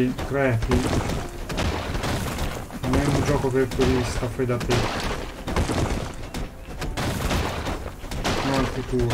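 A shovel thuds into soft dirt again and again.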